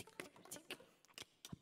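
A woman sings softly into a microphone.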